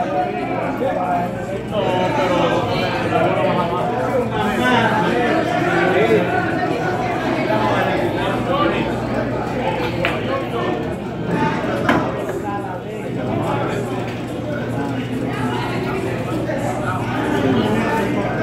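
A crowd of men chatter and murmur nearby.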